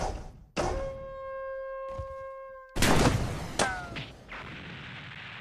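Video game sound effects whoosh and ring out in short bursts.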